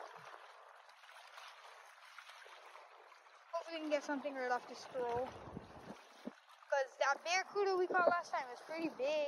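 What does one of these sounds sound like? Small waves lap gently against the shore outdoors.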